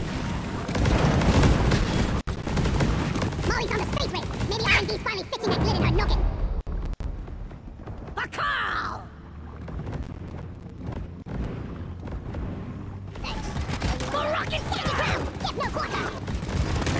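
A rapid-fire energy gun shoots in loud bursts.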